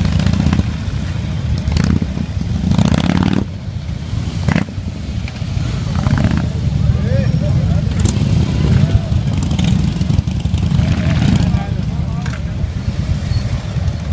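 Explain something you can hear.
Motorcycle engines rumble and idle loudly nearby.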